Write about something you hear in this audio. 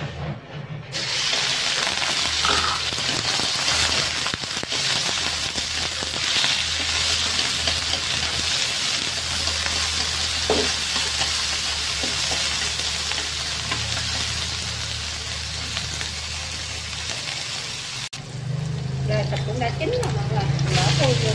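Meat sizzles loudly in hot oil.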